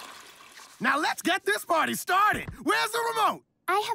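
A man speaks excitedly in a deep voice.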